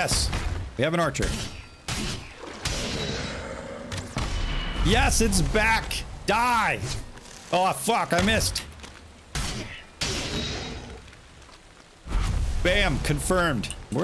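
Blade strikes thud and clang in a fight.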